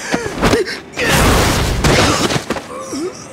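A heavy blow thuds against a body.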